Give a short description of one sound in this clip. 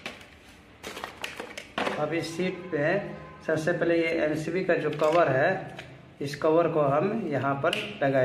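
Hard plastic parts click and clatter as they are taken apart.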